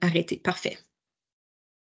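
A woman speaks briefly through an online call.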